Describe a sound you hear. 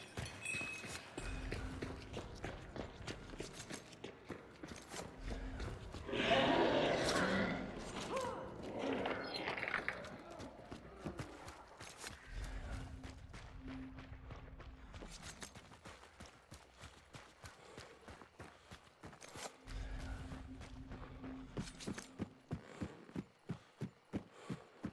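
Footsteps tread steadily over ground and wooden boards.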